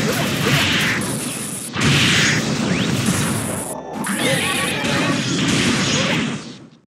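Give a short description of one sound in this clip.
Rapid video game hit effects crash and clatter in a fast flurry.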